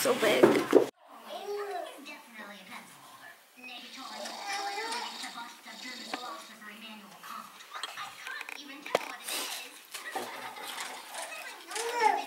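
A cartoon plays on a television in the room.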